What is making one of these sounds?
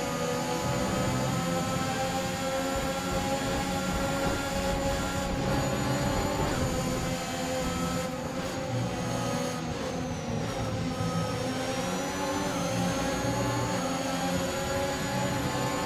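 Other racing car engines buzz close ahead.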